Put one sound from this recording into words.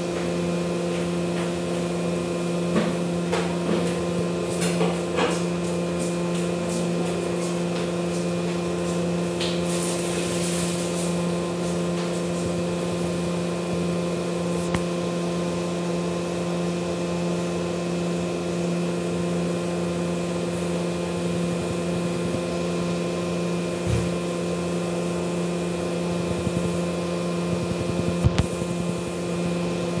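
Game music plays steadily with electronic tones.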